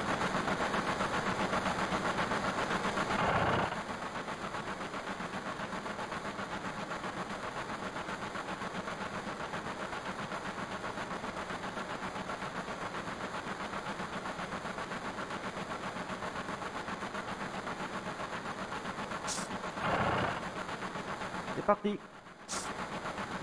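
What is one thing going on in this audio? Soft, steady video game music plays with a pulsing beat.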